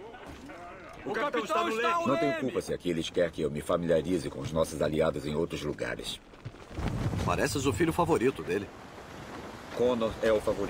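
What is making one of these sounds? A middle-aged man talks animatedly, close to a microphone.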